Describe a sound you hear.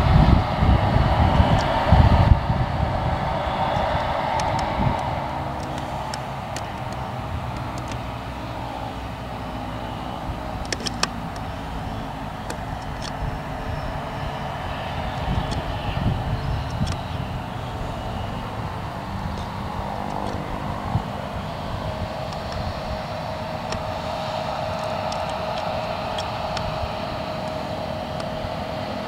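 A combine harvester's engine drones steadily in the distance.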